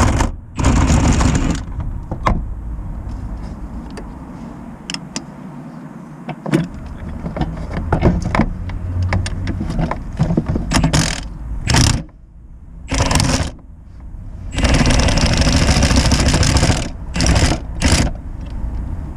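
A socket wrench ratchets with quick metallic clicks.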